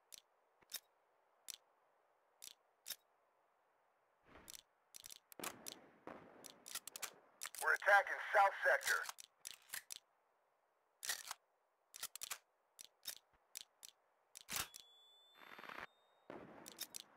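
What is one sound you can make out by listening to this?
Short interface clicks sound as menu options are chosen.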